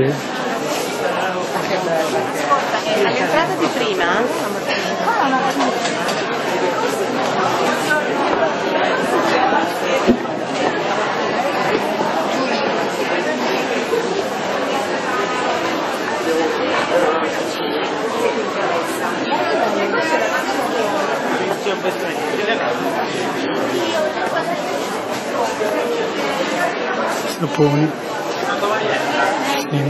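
A crowd of people chatter loudly all around in a busy echoing hall.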